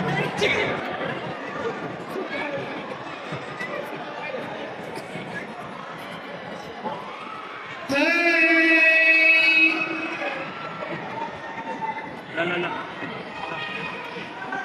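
A crowd cheers and chatters in a large hall.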